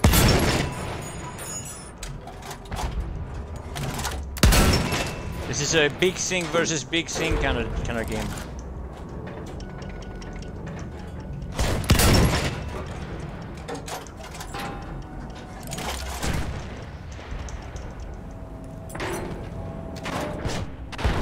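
Heavy guns fire with loud booming blasts.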